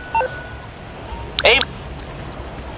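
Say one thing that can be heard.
A phone rings briefly.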